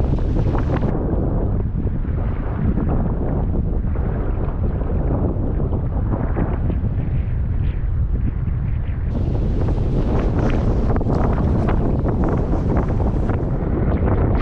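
Choppy water slaps against a canoe.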